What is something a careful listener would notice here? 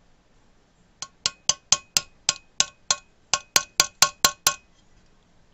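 A hammer strikes a metal punch in quick, sharp, ringing taps.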